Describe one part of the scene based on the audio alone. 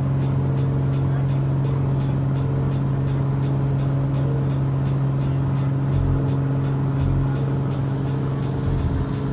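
Wheels rumble over a runway during the takeoff roll.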